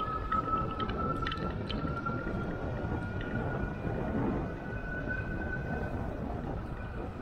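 Tyres hum steadily over smooth pavement.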